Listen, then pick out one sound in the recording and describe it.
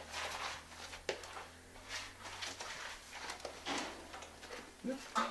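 A brush scrapes and scrubs across a wet rough floor.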